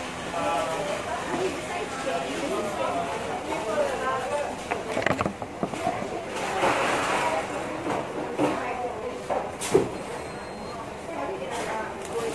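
A paper burger wrapper crinkles.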